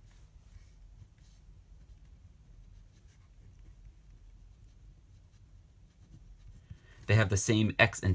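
A marker scratches softly on paper.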